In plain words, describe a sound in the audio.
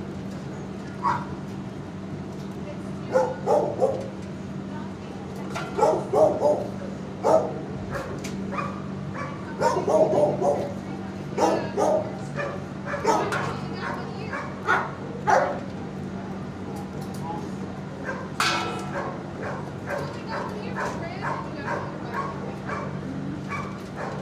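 A dog sniffs loudly close by.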